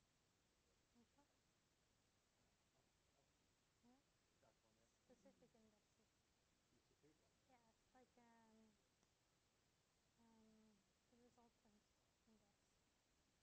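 A woman speaks calmly at a distance in a room.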